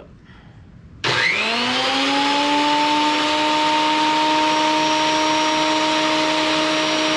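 A planer motor starts up and runs with a steady high whine.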